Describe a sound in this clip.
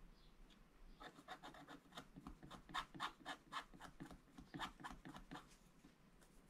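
A wooden stick scratches rapidly across stiff paper, close by.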